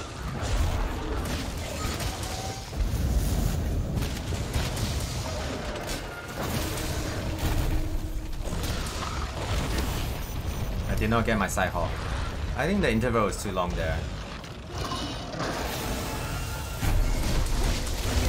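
Heavy weapon blows thud and clang against a creature's hide.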